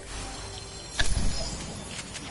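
A treasure chest creaks open with a sparkling chime.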